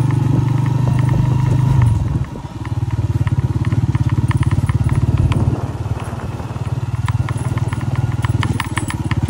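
Tyres crunch and rattle over a bumpy dirt track.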